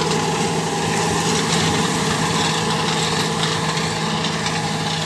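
A plough drags and scrapes through dry soil.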